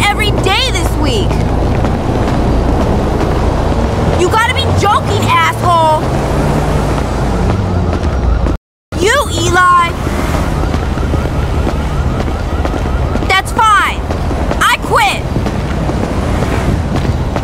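A young woman talks on a phone.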